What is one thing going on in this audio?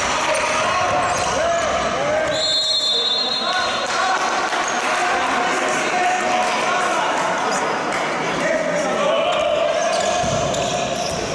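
Players' shoes squeak on an indoor court floor.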